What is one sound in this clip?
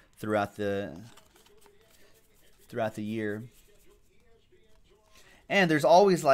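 Trading cards shuffle and rustle in hands.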